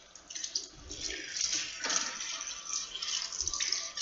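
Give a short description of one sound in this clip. Water splashes onto a hand.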